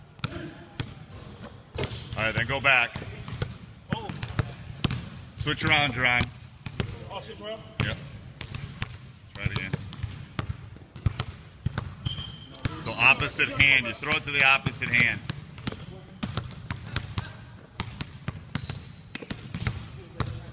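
Basketballs bounce sharply on a wooden floor in a large echoing gym.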